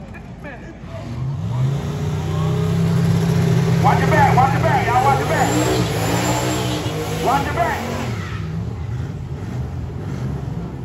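A drag car engine rumbles loudly and revs.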